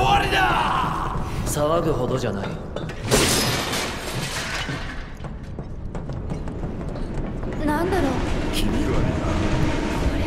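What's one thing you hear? Footsteps clang on metal grating and stairs.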